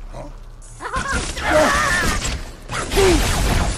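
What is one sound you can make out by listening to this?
An electric blast crackles loudly.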